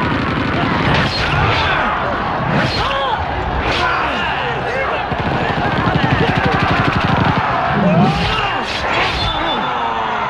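Rifles fire in sharp shots.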